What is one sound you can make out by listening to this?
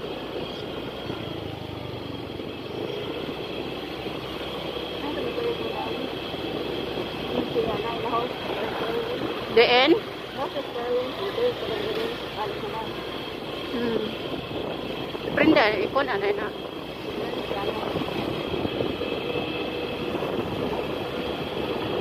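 Wind rushes past while riding outdoors.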